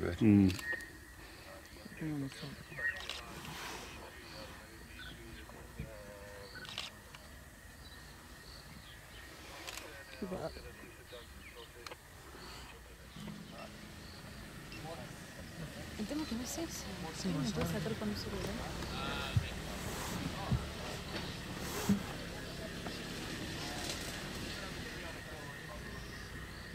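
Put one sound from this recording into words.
A leopard chews and tears at raw meat close by.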